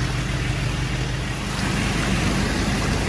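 A vehicle engine rumbles as tyres churn through mud.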